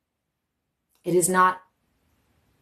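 A young woman speaks a few words briefly, close by.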